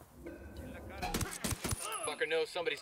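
Gunshots crack loudly in quick succession.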